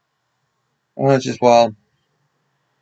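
A man speaks a few loud words close to the microphone.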